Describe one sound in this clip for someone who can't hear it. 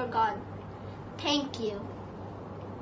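A young boy speaks calmly and close by.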